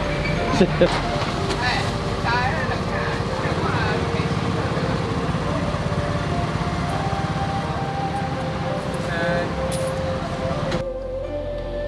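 Outdoor street noise hums steadily.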